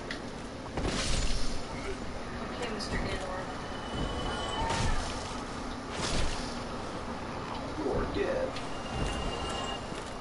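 A sword swings and strikes in a fight.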